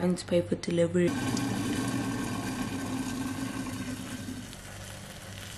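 Hot water pours into a cup.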